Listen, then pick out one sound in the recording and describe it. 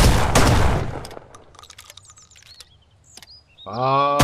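Shells click as they are loaded into a shotgun.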